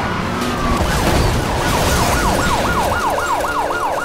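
A car crashes with a loud crunching impact.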